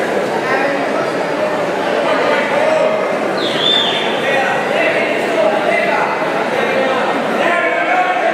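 A crowd of spectators shouts and cheers.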